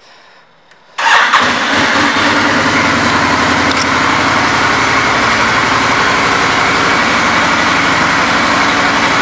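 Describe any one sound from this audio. A motorcycle engine idles with a steady, deep rumble.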